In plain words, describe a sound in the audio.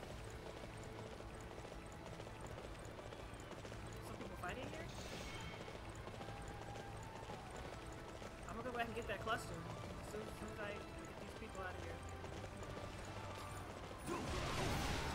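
Horse hooves thud steadily at a gallop.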